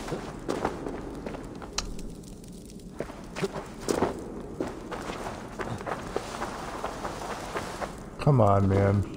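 Footsteps crunch on loose stones.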